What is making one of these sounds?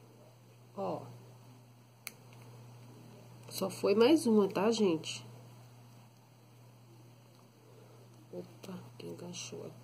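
Small beads click softly against each other as they are handled.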